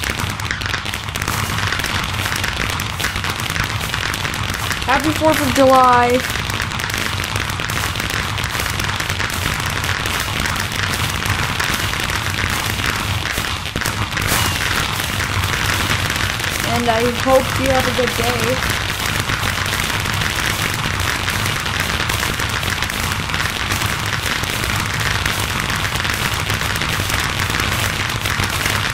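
Fireworks burst in the distance.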